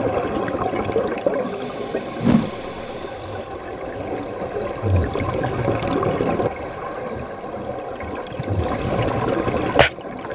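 Air bubbles from scuba breathing gurgle and rumble underwater, coming and going in bursts.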